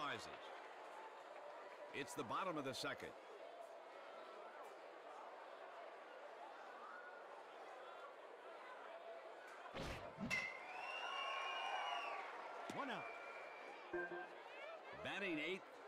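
A crowd murmurs steadily.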